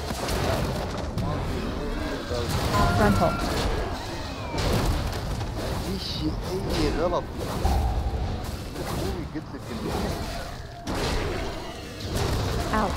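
Magic spells crackle and boom in a fast fight.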